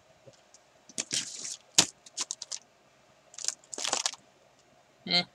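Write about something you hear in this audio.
A sheet of stiff paper rustles and crinkles as it is handled.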